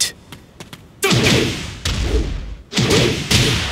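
Heavy blows land with loud thuds and whooshes.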